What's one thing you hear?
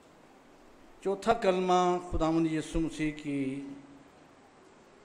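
An elderly man speaks slowly and solemnly into a microphone.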